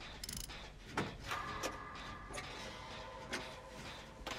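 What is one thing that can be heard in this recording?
A machine clanks and rattles as someone works on it.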